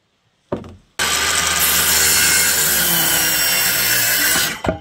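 A cordless circular saw cuts through wood.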